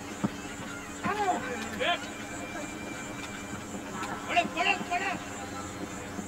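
Players shout across an open field outdoors.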